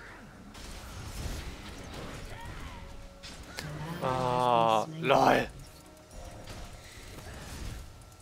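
Magic blasts and weapon strikes clash in a fight.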